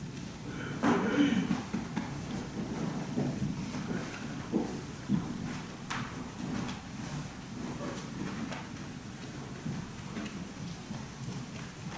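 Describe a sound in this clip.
A man speaks steadily in an echoing room, heard through a microphone.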